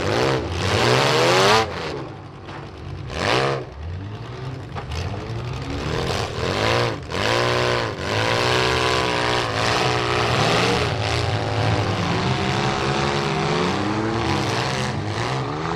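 Engines rev and roar loudly, rising and falling.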